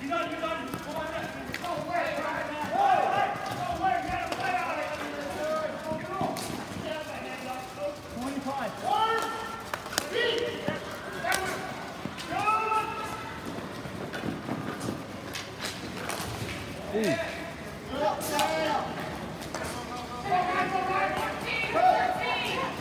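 Hockey sticks clack against a ball and the floor.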